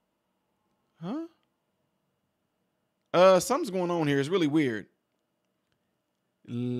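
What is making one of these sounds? A young man speaks with animation into a close microphone, in short bursts.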